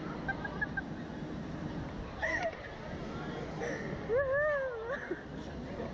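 A young woman shrieks and laughs up close.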